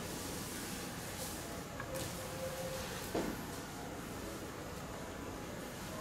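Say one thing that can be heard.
Cloth rustles as a man swirls a large sheet.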